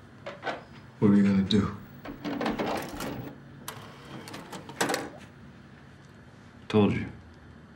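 A young man speaks quietly nearby.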